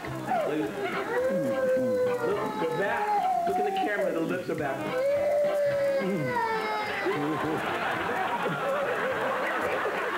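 A toddler cries and wails loudly close by.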